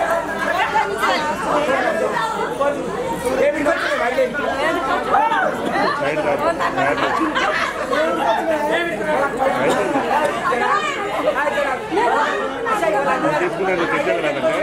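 A crowd of women sing and chatter loudly close by.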